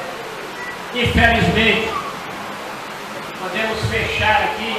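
An elderly man speaks with animation through a microphone and loudspeakers in an echoing hall.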